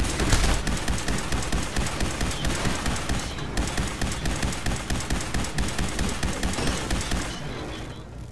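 A heavy gun fires in a rapid, steady stream of shots, then stops.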